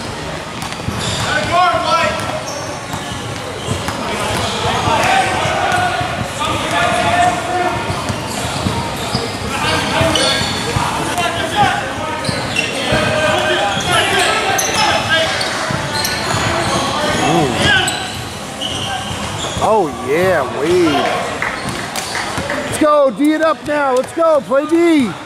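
Young players shout to each other in an echoing gym.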